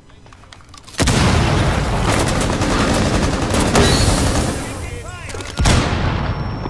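A loud blast roars and rumbles.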